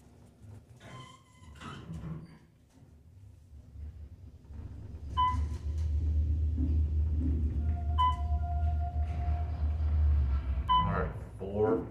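An elevator chimes with short electronic beeps as it passes floors.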